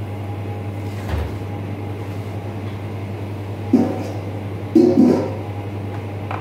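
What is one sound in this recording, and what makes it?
Metal trays clatter and bang on a counter.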